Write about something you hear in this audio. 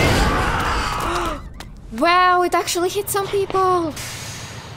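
A young woman exclaims loudly into a microphone.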